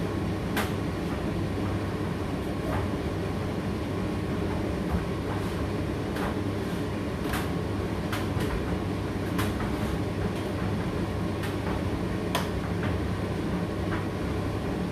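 A condenser tumble dryer hums as its drum turns.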